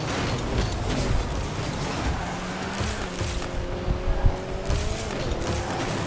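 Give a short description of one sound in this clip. A game car engine hums and boosts with a whooshing roar.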